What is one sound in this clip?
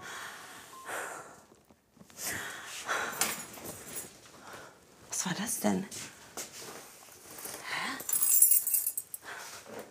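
Clothes rustle as a young woman rummages through a basket.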